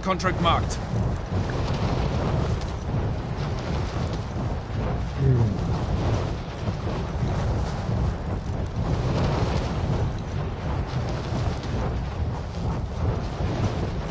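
Wind rushes loudly and steadily past a falling skydiver.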